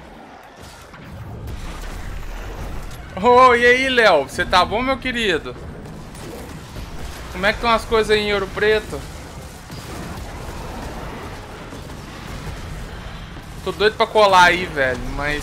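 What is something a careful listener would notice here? Gunfire and explosions rumble from a video game.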